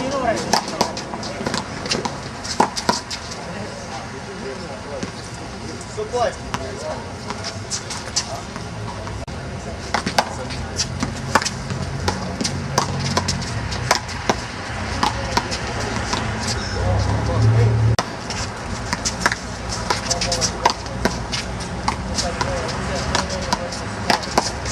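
A ball smacks sharply against a wall and hands, echoing outdoors.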